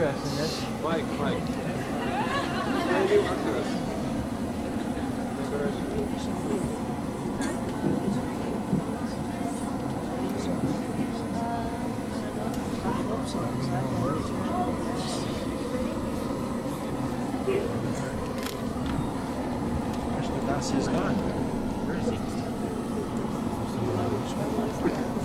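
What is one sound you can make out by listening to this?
A crowd of men and women murmur and chatter nearby.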